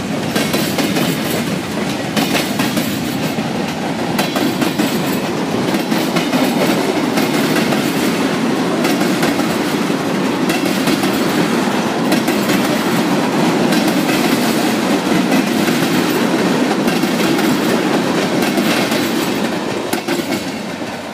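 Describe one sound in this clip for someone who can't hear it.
Freight car wheels clack over rail joints.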